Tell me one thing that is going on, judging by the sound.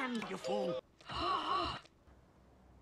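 A cartoon woman shrieks in alarm.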